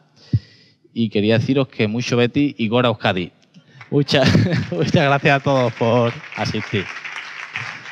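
A man speaks with animation through a microphone and loudspeakers in an echoing hall.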